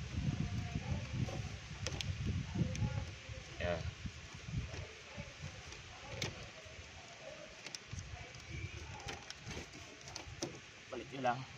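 Plastic clips click and snap loose.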